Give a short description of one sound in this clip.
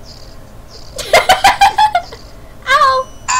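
A short electronic blast bursts loudly.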